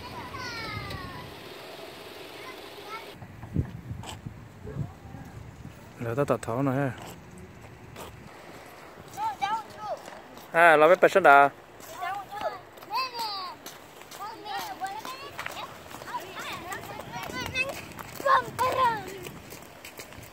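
Young children shout and talk excitedly close by, outdoors at night.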